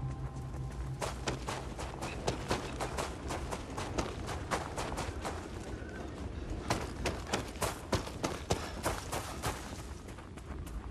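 Boots crunch quickly over loose rocks and gravel.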